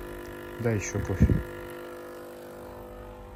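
A capsule coffee machine hums as it brews.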